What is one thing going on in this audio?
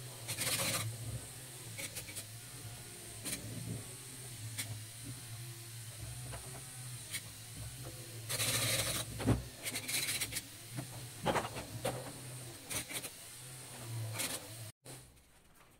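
A small toy motor whirs and its plastic tracks click steadily.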